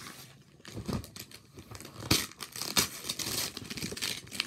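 Wrapping paper rips and crinkles as a gift is torn open.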